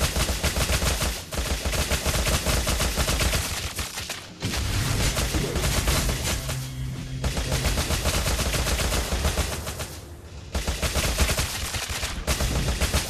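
Game spell effects whoosh and blast during a fight.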